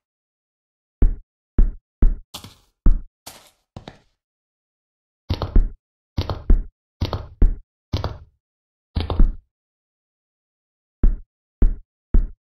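Blocks thud as they are placed.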